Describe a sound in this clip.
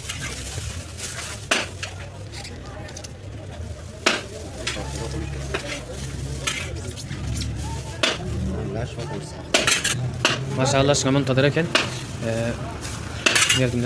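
A metal ladle scrapes and clinks against a large pan.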